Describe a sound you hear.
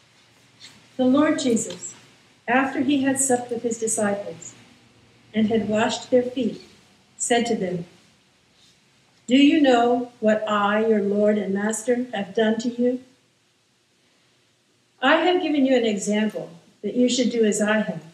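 A man reads aloud clearly through a microphone, in an echoing room.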